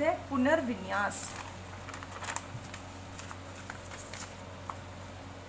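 Paper sheets rustle and crinkle as they are handled.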